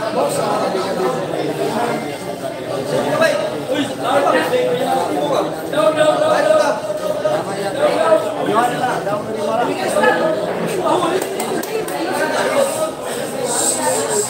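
A crowd of young men chatters and murmurs nearby.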